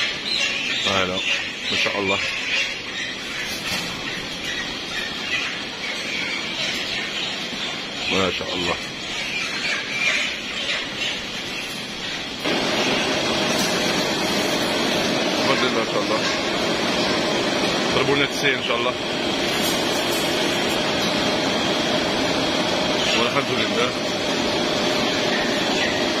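An overhead conveyor line hums and rattles steadily.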